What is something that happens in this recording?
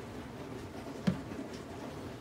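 A plastic bottle is set down on a countertop with a soft knock.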